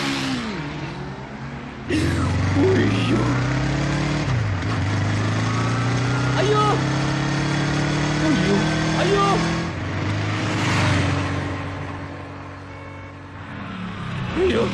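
A motorcycle engine drones as it rides along a street.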